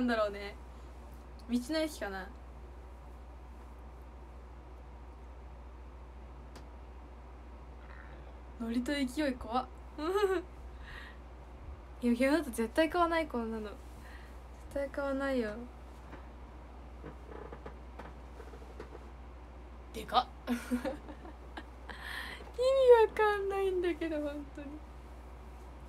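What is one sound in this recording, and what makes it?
A young woman speaks close to a microphone in short bursts, pausing between them.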